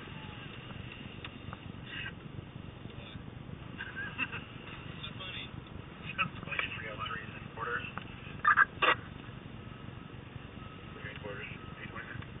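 A car engine rumbles low and steady, heard from inside the car.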